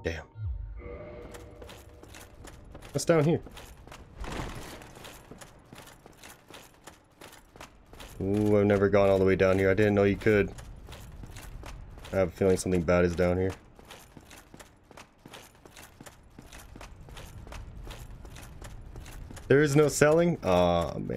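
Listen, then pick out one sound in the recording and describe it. Armoured footsteps clatter on stone stairs.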